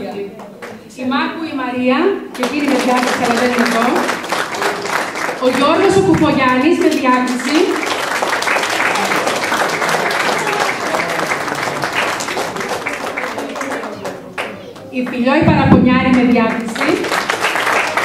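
A group of young children sings together in short bursts.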